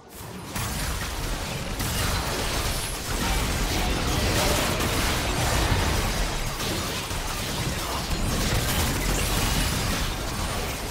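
Video game combat effects whoosh, crackle and burst.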